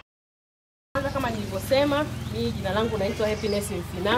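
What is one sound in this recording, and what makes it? A woman speaks loudly and clearly to a group outdoors.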